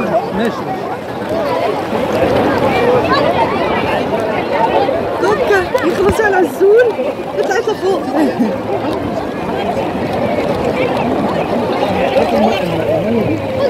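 Water splashes and laps gently.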